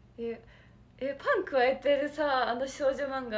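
A young woman laughs brightly.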